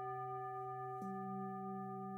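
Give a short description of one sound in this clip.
A singing bowl is struck softly, adding a new low tone.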